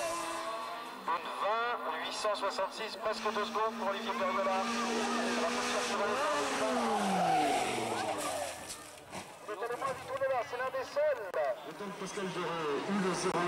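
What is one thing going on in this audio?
A rally car engine revs hard and gears change.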